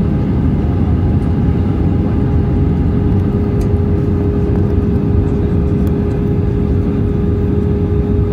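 Air rushes loudly past an airplane wing.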